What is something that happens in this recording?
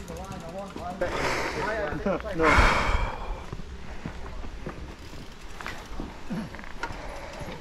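Bike tyres roll over a dirt trail.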